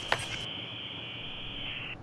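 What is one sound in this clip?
Electronic static crackles and hisses.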